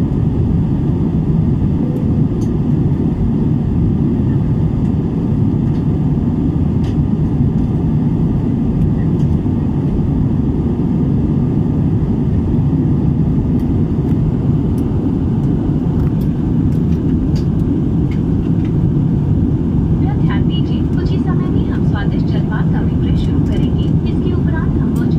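Jet engines roar in a steady, low rumble inside a cabin.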